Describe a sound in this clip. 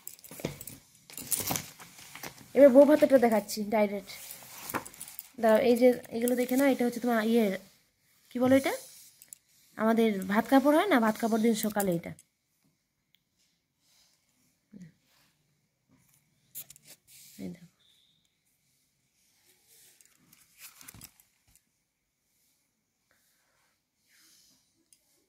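Stiff album pages rustle and flap as a hand turns them.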